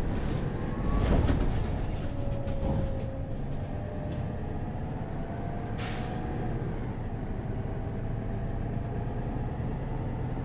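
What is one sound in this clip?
A bus engine hums steadily while the bus drives along.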